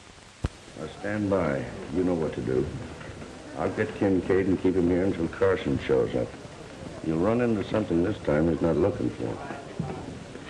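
A man speaks gruffly and close by.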